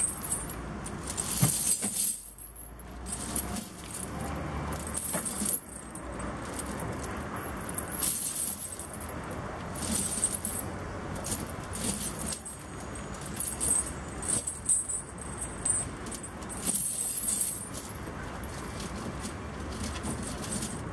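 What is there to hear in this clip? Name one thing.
Metal chains clink and rattle against a truck tyre.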